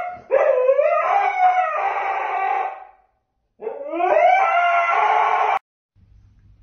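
A dog howls close by in long, wavering cries that rise and fall.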